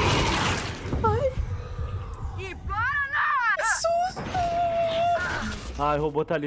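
A young woman wails and whines loudly close to a microphone.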